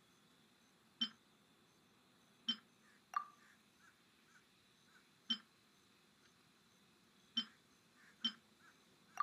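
Short soft interface clicks sound now and then.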